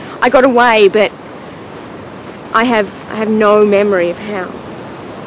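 A young woman speaks quietly and tensely nearby.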